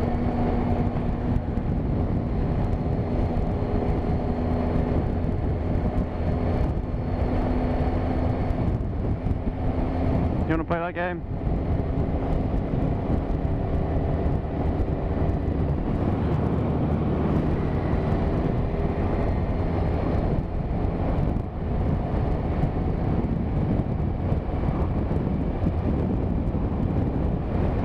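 Wind rushes loudly past the rider.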